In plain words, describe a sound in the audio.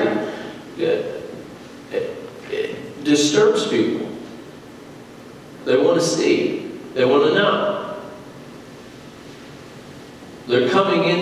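A woman speaks calmly into a microphone in a large echoing hall, with pauses between phrases.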